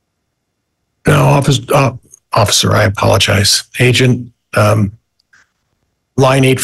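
A man speaks steadily into a microphone, heard through an online call.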